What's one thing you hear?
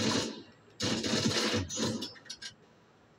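Rapid gunfire crackles from a game on a television.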